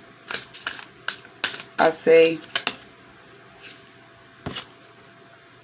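Cards rustle and flick as they are shuffled.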